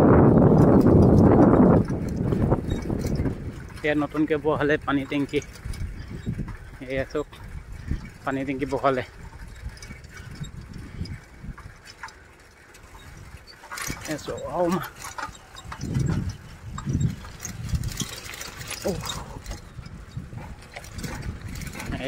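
Tyres roll steadily over a paved path.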